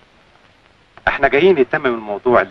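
A man speaks with emphasis, close by.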